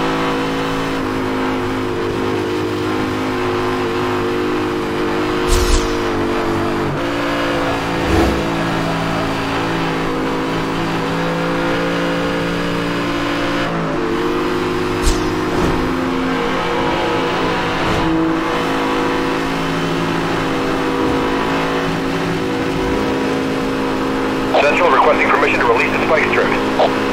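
A sports car engine roars steadily at high speed, shifting gears now and then.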